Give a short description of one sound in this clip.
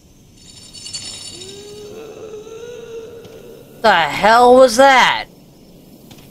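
A young woman speaks loudly with animation, close to a microphone.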